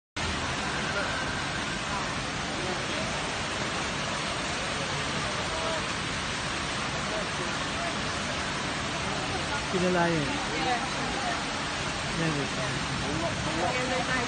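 Fountain water splashes steadily.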